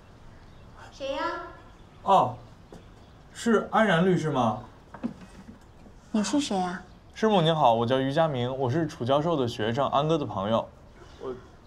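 A man speaks politely at a door.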